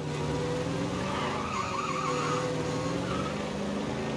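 Tyres screech briefly on a skidding car.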